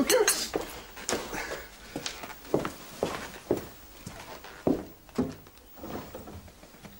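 Footsteps thud on a wooden floor, walking away.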